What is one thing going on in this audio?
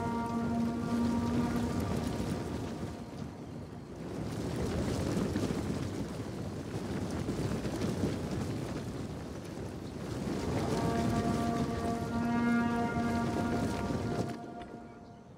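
A large crowd of soldiers clatters and shuffles about.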